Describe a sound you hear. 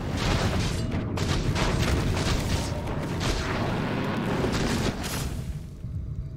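Magic spells crackle and clash loudly during a fight.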